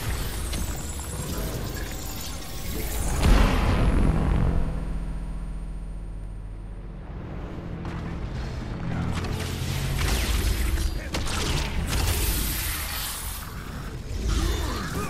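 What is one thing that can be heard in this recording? Heavy blasts and impacts boom during a fast fight.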